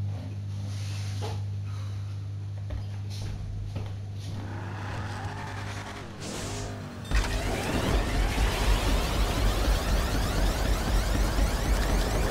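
A car engine revs and roars.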